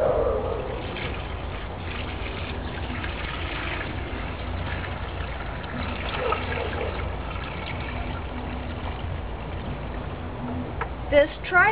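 Water pours from a bucket and splashes into a pot.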